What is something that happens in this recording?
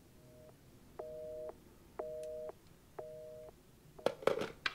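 A telephone handset beeps with short repeated tones.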